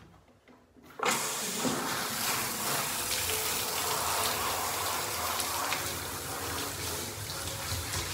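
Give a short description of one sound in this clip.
Water sprays steadily from a shower head.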